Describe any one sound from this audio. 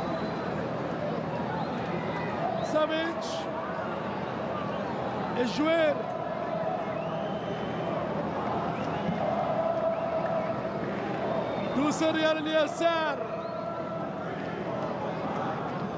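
A large crowd cheers and chants steadily in a big open stadium.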